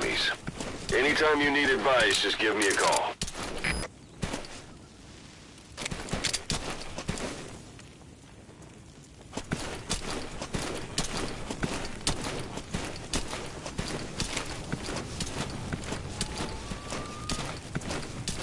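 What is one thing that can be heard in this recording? A body crawls and scrapes across dry, gravelly ground.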